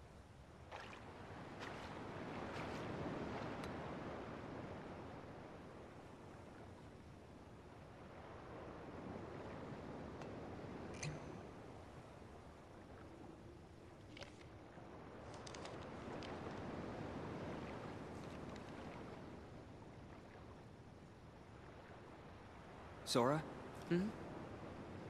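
Wind blows outdoors in slow, swelling gusts.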